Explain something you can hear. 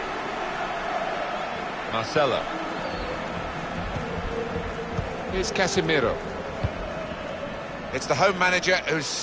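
A stadium crowd murmurs and cheers steadily throughout.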